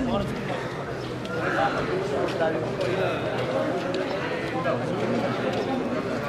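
Several men talk at once outdoors, close by.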